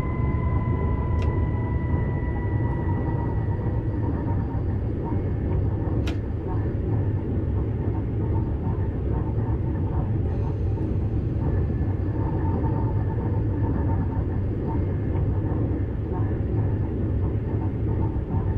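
A train's wheels rumble steadily on the rails.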